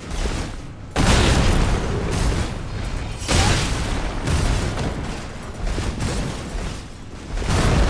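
Swords clash with loud metallic hits.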